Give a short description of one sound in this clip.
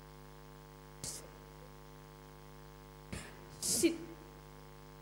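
A woman answers briefly into a microphone.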